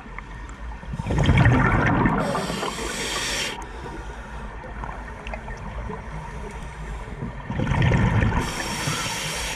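Bubbles rush and gurgle from a diver's breathing gear close by, underwater.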